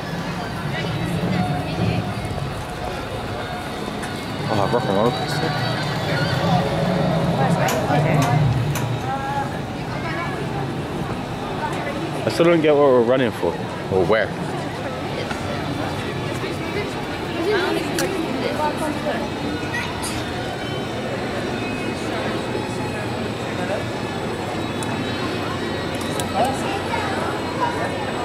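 A crowd of people chatters outdoors in the distance.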